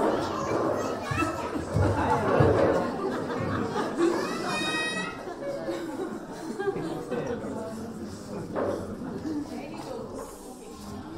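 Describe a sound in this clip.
Young children talk and call out together in a large hall.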